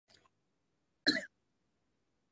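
An older woman coughs once into her hand.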